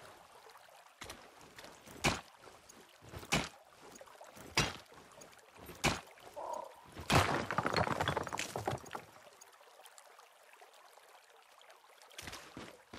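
Footsteps crunch on loose stones.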